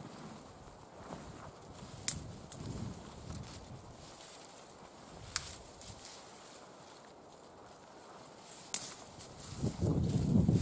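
Snow crunches underfoot.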